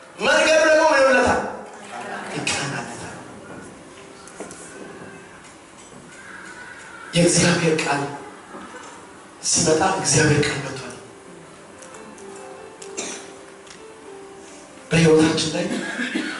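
A man preaches with animation into a microphone over loudspeakers, in a large echoing hall.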